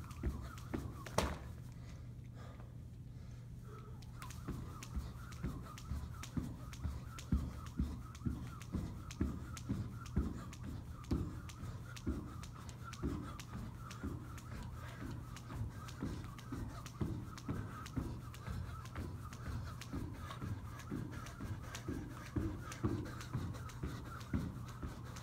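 A skipping rope slaps the floor in a quick, steady rhythm.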